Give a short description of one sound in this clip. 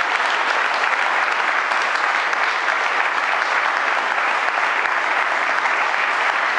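An audience claps steadily in a room.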